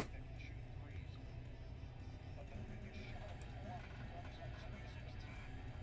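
A hard plastic card case clicks and taps as it is handled.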